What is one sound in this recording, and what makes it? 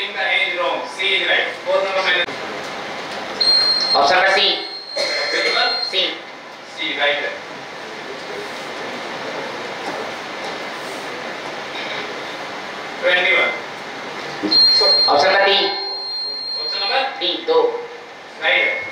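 A man reads out questions through a microphone.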